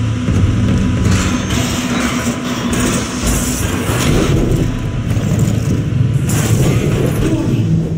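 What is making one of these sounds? Heavy boots clank on a metal floor.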